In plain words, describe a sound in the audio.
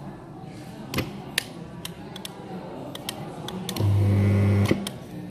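Small plastic buttons click several times.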